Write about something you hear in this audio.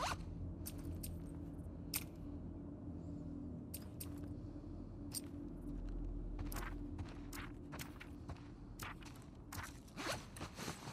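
Soft interface clicks tick one after another.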